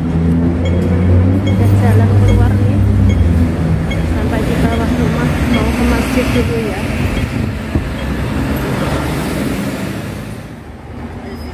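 A young woman speaks close to the microphone with animation.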